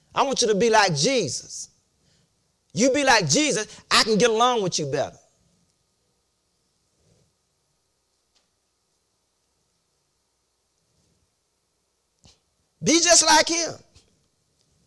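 A middle-aged man preaches loudly and with emphasis in an echoing room, pausing between phrases.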